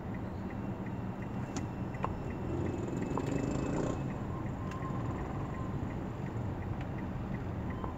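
A motorcycle tricycle putters past close by.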